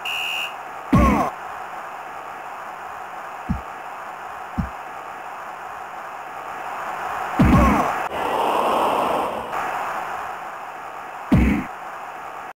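A ball is kicked with sharp thuds now and then.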